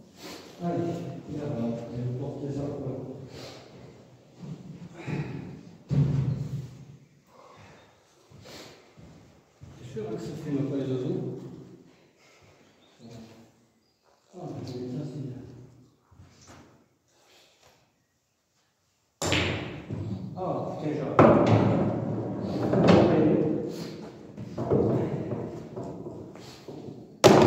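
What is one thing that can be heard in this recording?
A young man talks casually in a bare echoing room.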